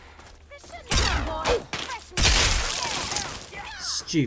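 A heavy gun fires a loud burst.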